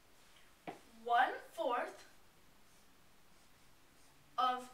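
A young boy speaks calmly and briefly nearby.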